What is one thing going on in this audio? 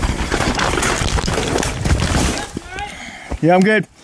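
A bicycle crashes to the ground with a thud.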